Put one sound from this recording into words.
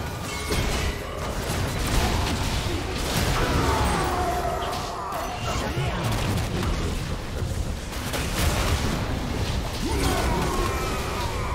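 Magic spells blast, crackle and whoosh in quick succession during a fast fight.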